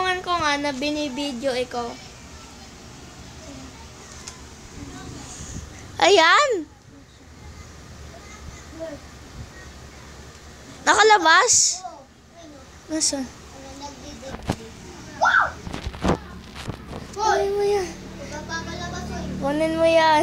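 A young child whines and squeals close by, in short bursts.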